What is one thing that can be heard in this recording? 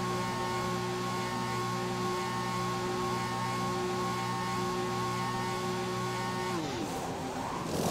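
A racing car engine drones steadily at low speed, then winds down.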